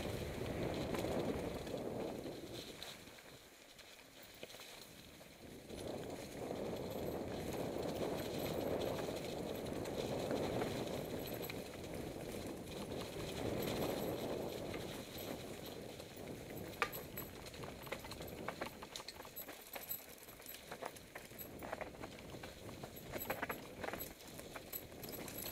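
Wind rushes past close by.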